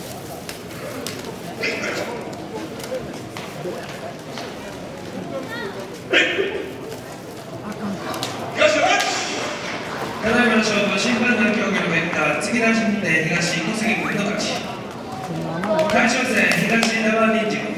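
A crowd murmurs quietly in the background.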